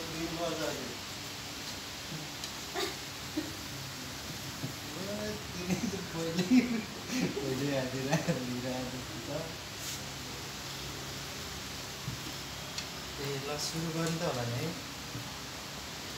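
Plates clink on a table as they are set down.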